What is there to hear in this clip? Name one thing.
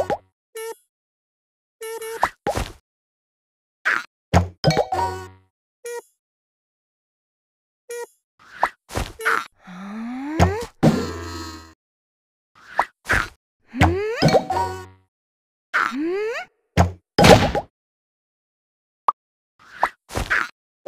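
A slingshot snaps as it fires a bubble.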